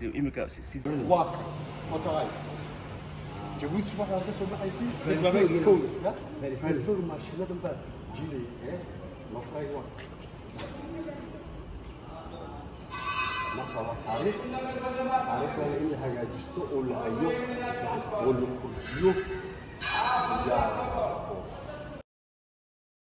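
A man talks calmly in a large echoing hall.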